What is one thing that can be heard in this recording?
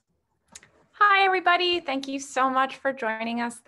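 A young woman speaks warmly and brightly over an online call.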